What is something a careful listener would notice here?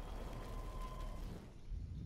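Rain patters on a road.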